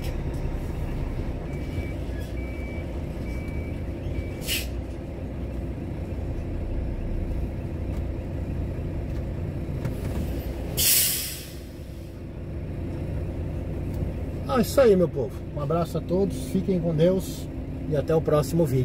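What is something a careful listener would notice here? A diesel truck engine rumbles in the background.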